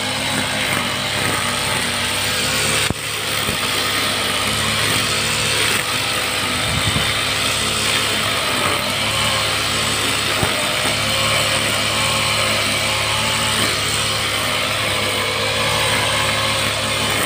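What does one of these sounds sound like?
A string trimmer whips through grass with a rustling hiss.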